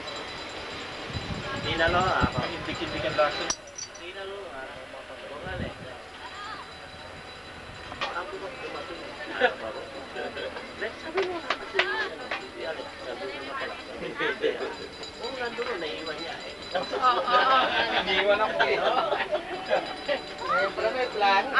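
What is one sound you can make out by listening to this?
A woman and other people talk close by.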